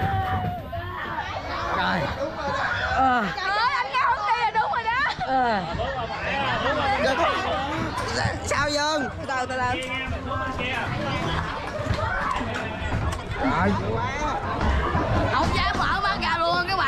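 Young people laugh and chatter excitedly close by.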